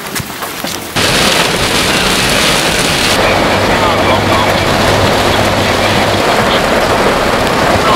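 Heavy rain pours down and drums on a car.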